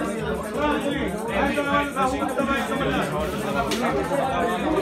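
Pool balls clack together as a cue strikes them.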